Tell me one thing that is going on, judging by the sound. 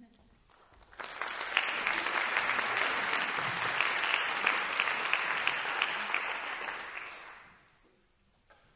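An audience applauds loudly, then the clapping fades.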